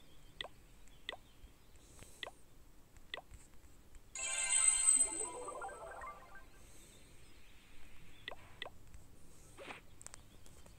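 Soft game menu clicks tap now and then.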